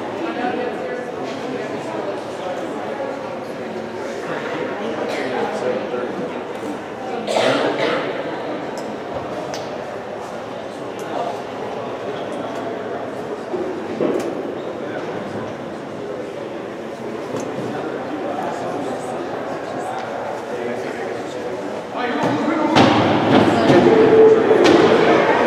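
Ice skates scrape and hiss across the ice in a large echoing arena.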